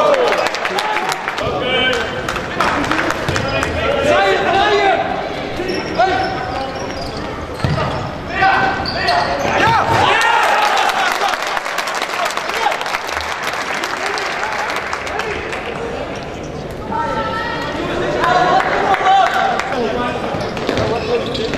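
Men shout and call to each other in a large echoing hall.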